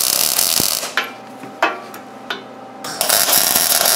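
Hot metal pings and ticks as it cools.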